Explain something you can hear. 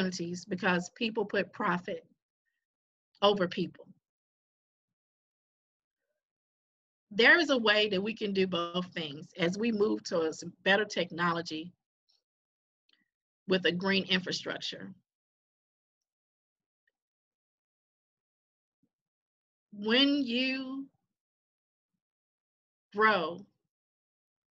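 A woman speaks with animation over an online call, in bursts with pauses.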